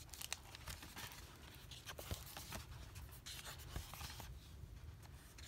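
Book pages rustle and slide as they are turned by hand.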